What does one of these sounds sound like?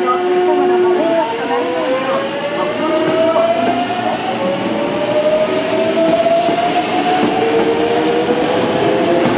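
An electric train motor whines and rises steadily in pitch as the train speeds up.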